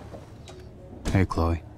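A young man speaks briefly.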